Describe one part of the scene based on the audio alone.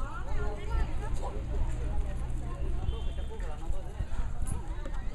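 A crowd of women and men chatter nearby outdoors.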